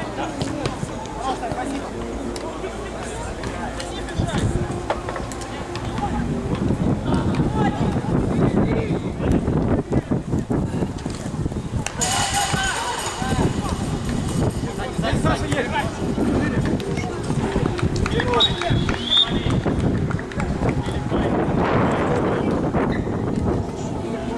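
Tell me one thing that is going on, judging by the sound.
Men shout to each other outdoors, some way off.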